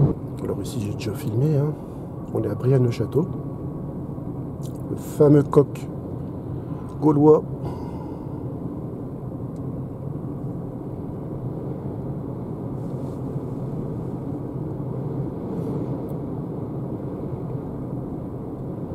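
A car hums steadily from inside the cabin as it drives.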